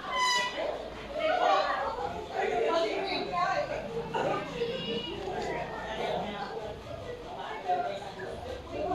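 A young boy speaks clearly and steadily close by.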